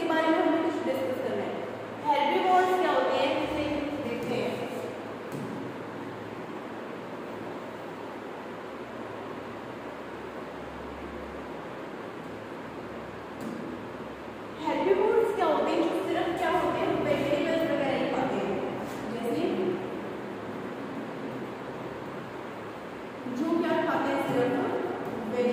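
A young girl speaks calmly close by.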